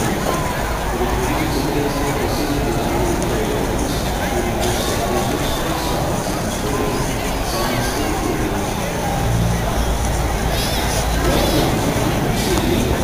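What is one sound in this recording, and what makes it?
Men and women chatter and call out nearby outdoors.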